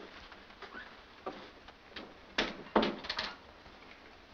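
A door closes with a click.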